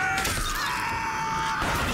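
A gun fires.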